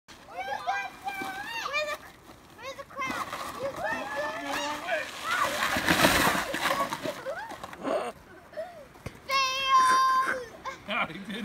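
A sled scrapes and hisses down packed snow.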